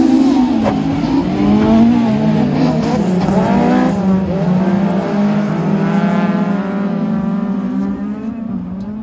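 Rally car engines roar and rev loudly nearby, then fade into the distance.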